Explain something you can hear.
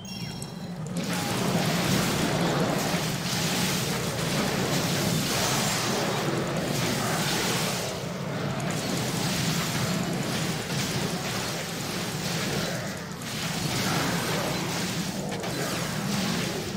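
Weapons clash and spells burst in a fast, noisy fight.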